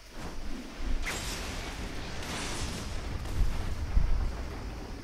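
A heavy energy blast crashes into the ground with a booming rumble.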